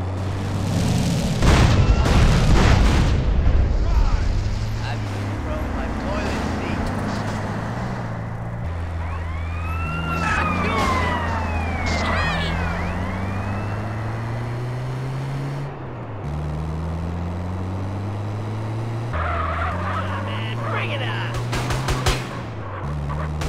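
An engine revs steadily, rising and falling in pitch.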